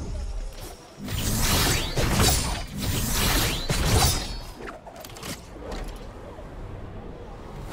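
Wind rushes loudly past while gliding through the air.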